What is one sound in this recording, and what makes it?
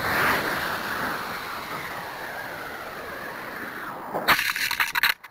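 A rocket motor roars and fades away.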